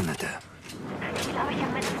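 A metal gate rattles as hands push it open.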